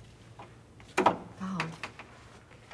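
A woman speaks briefly and calmly nearby.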